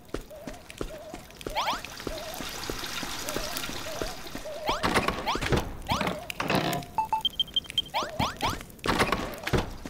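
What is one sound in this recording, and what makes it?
Light footsteps patter quickly across a wooden floor.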